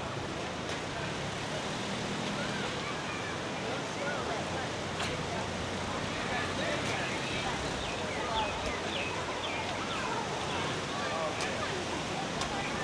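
A little girl chatters softly nearby.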